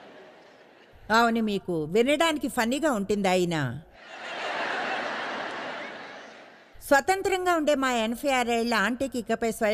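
A woman speaks calmly through a microphone in a large hall.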